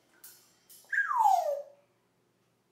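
An African grey parrot whistles a falling note.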